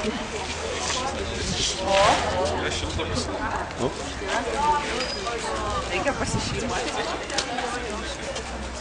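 Flames crackle as paper burns.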